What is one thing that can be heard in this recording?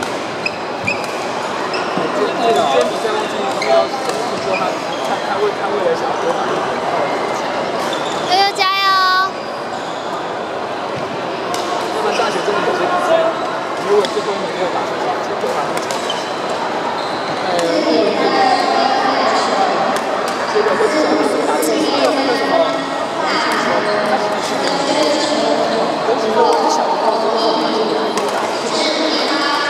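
Shoes squeak on a wooden court.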